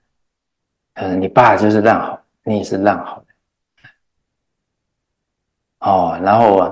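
A middle-aged man speaks calmly and warmly into a close microphone.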